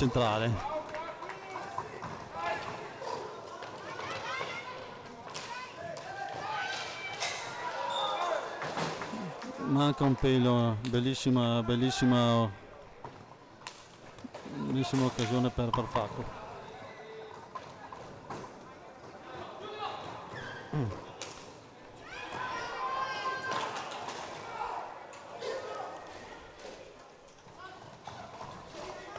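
Roller skate wheels rumble across a hard floor in an echoing hall.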